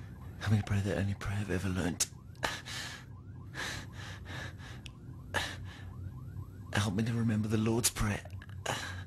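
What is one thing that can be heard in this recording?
A man groans and moans close by.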